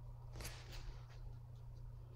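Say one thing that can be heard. A brush brushes softly across paper.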